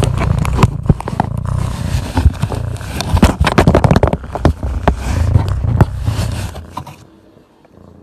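A cat scratches and bumps about inside a cardboard box, close by.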